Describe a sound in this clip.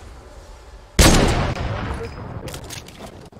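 A sniper rifle fires one loud shot that echoes away.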